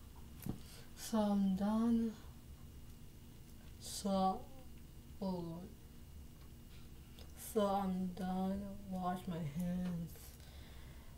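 A young woman sings close by in short phrases, with small pauses.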